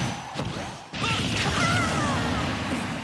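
A big laser blast roars loudly.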